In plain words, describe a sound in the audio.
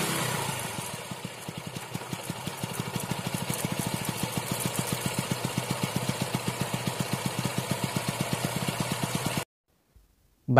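A motorcycle engine idles with a steady, fast putter.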